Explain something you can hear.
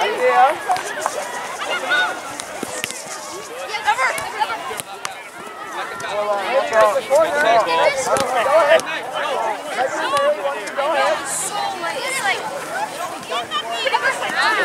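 A soccer ball is kicked with dull thuds.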